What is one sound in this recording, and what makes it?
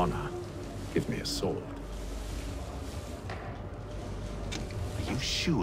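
A young man speaks quietly close to a microphone.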